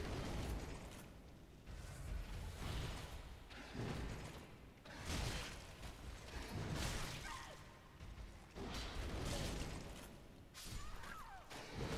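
Metal weapons clash and strike armour in a fight.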